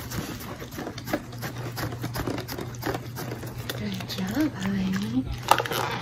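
A dog sniffs and snuffles up close.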